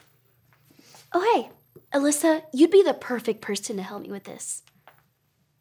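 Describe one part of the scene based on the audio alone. A young woman speaks clearly and cheerfully nearby.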